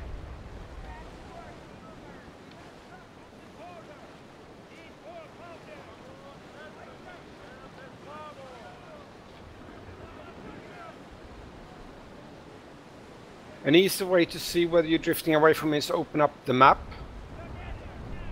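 Sea waves wash and splash against a sailing ship's hull.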